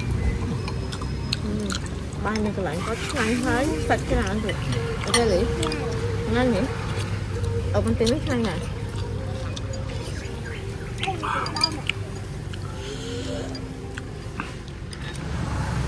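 Utensils clink against plates.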